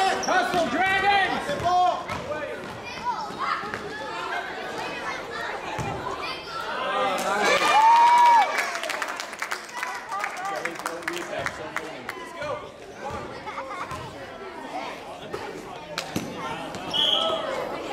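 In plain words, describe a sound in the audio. Spectators and players shout and cheer in an echoing gym.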